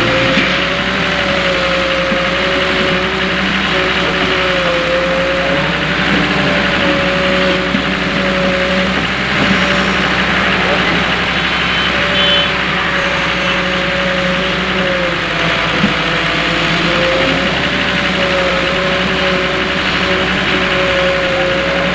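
Loose earth pours and rumbles into a metal truck bed.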